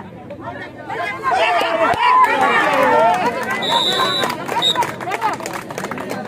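A crowd cheers loudly as players tackle.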